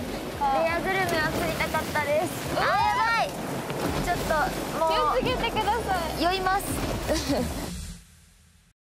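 A young woman talks excitedly close by.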